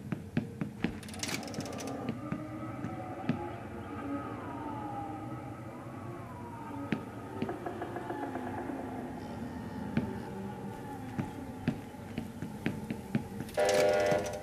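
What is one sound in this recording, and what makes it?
A lever clanks as it is pulled.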